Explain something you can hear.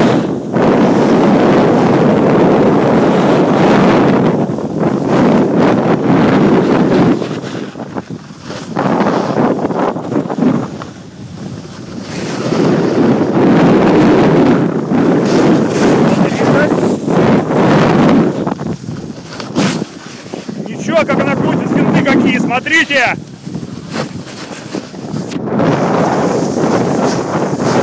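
Snowboards scrape and hiss over packed snow.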